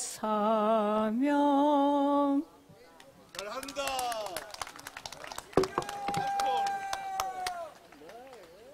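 A woman sings through a microphone outdoors.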